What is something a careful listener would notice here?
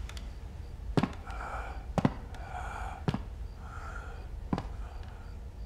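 Boots step slowly on a hard floor.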